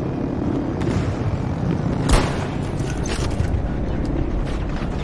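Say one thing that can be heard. An engine rumbles steadily.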